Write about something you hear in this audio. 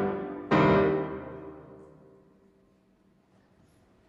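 A grand piano plays a loud final chord that rings out and slowly fades in a large hall.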